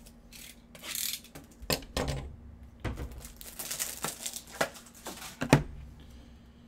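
A plastic wrapper crinkles and rustles.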